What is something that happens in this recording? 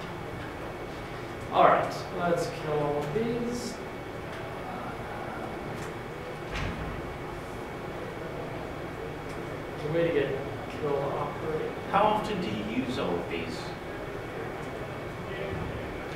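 Laptop keys click as a young man types.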